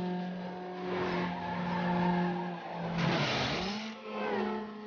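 Tyres screech as a car slides around a corner.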